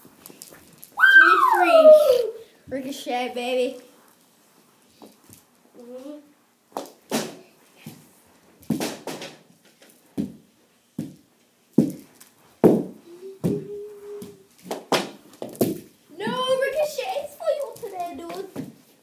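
A young boy shouts and chatters excitedly nearby.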